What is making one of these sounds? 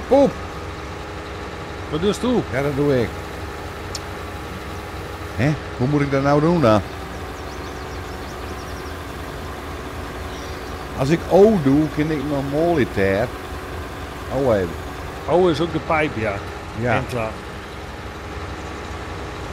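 A large harvester engine hums steadily.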